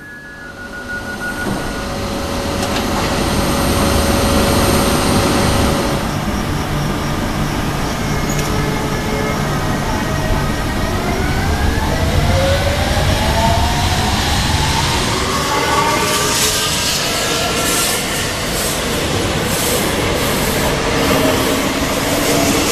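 An electric train rumbles and whirs close by.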